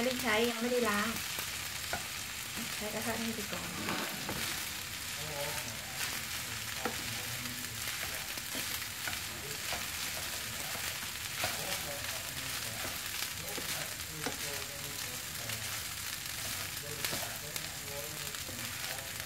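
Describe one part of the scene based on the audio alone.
A wooden spatula scrapes and taps against a frying pan.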